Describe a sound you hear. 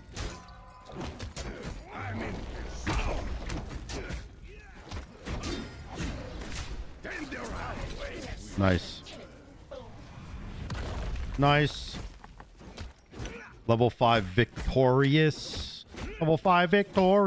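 Game sound effects of spells and hits crackle and whoosh.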